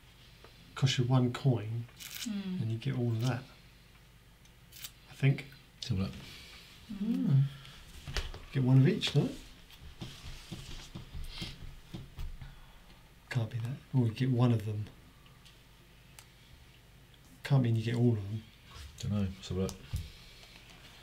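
A man talks calmly, close to a microphone.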